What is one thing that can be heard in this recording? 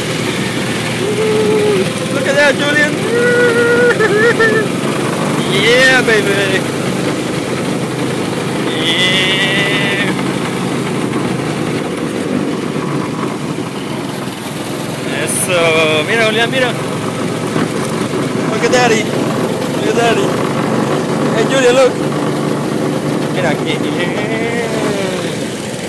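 A go-kart engine drones steadily up close.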